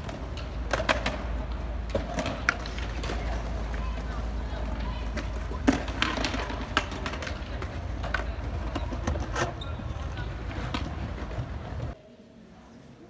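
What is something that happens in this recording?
Skateboard wheels roll and clack on stone paving.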